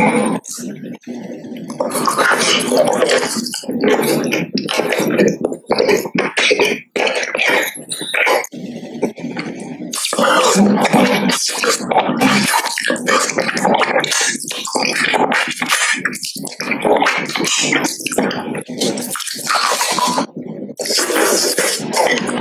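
A man speaks close to a microphone.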